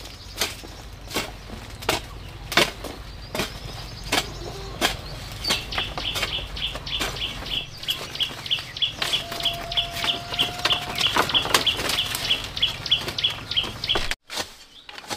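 Bamboo poles knock and clatter against each other.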